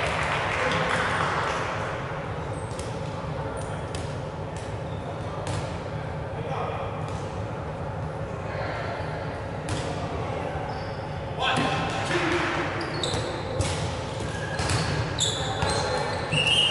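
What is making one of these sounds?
Balls bounce and thud on a wooden floor.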